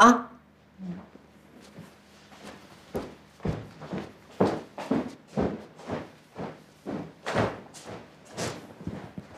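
Footsteps tap across the floor.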